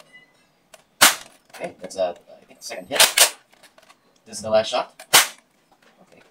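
A toy blaster fires with sharp bursts.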